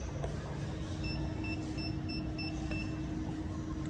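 A service lift beeps in short pulses.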